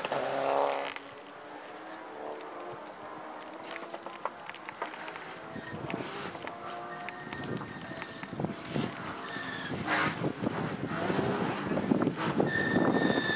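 A second rally car engine revs more faintly in the distance and draws nearer.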